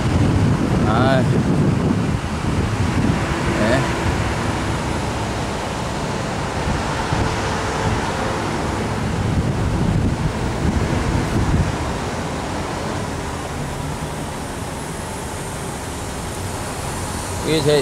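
An open vehicle rumbles steadily along outdoors.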